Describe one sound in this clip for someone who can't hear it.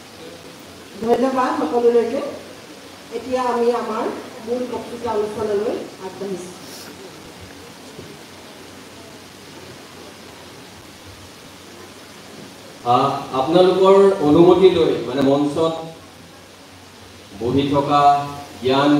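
A woman speaks into a microphone in a room with some echo.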